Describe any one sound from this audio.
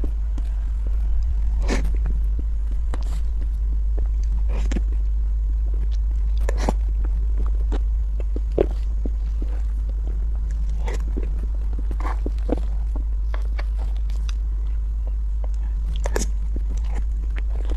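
A woman chews soft food close to a microphone with wet, smacking sounds.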